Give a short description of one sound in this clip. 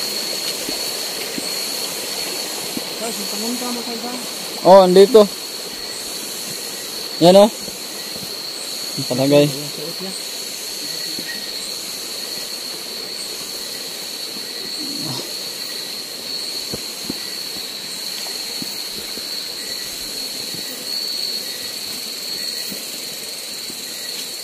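Leaves and grass rustle as someone brushes past.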